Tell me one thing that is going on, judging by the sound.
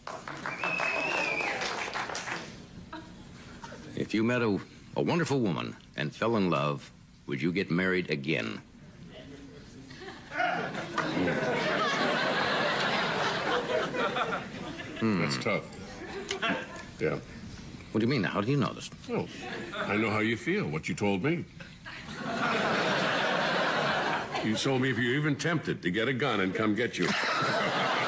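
An older man speaks into a microphone, reading out with comic timing.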